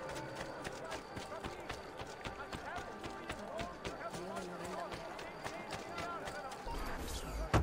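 Quick footsteps patter on stone as a man runs.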